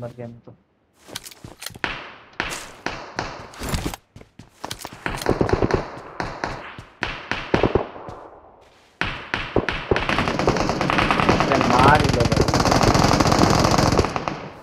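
Quick footsteps thud across a hard floor.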